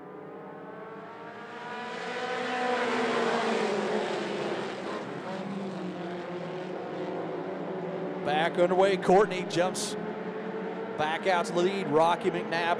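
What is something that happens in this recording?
Many race car engines roar and whine, rising as the cars pass close by.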